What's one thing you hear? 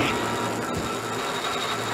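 An electric spark crackles briefly.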